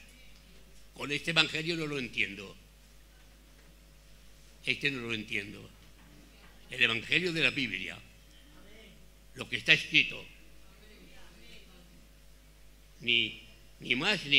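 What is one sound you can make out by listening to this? An elderly man speaks with animation into a microphone, pausing between phrases.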